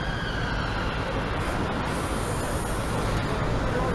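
A bus drives past.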